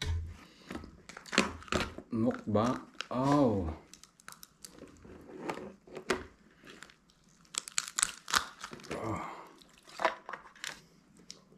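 Lobster shells crack and snap as they are pulled apart.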